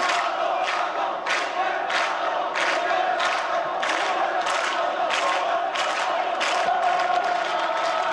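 A large crowd chants in a steady rhythm outdoors.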